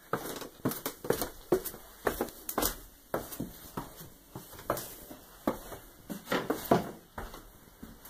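Footsteps thud on wooden stairs and floorboards.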